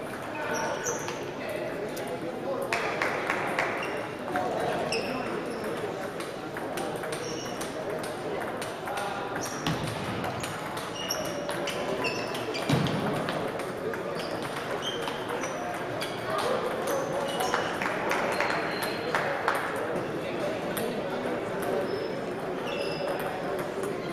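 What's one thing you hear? Spectators murmur in a large echoing hall.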